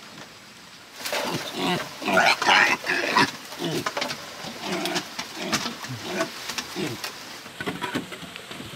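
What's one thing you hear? Woven bamboo strips rustle and creak as they are handled.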